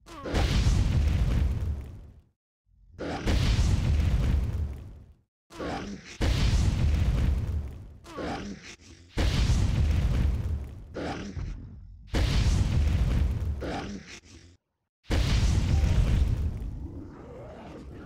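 Heavy explosive blasts boom again and again, each fading away.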